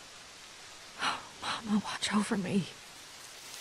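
A young woman speaks in a shaky, tearful voice.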